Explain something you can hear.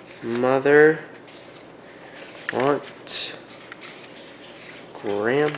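Paper cards are set down softly on a carpet.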